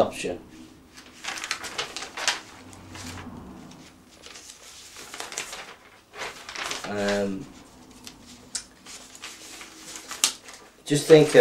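Paper sheets rustle and crackle.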